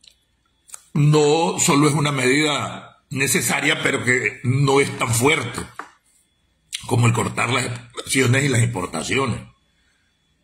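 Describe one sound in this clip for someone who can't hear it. A middle-aged man speaks with animation, close to the microphone.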